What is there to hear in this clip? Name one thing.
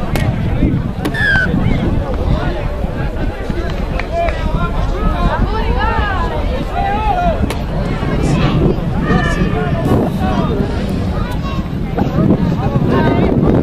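Spectators shout and call out from the sidelines outdoors.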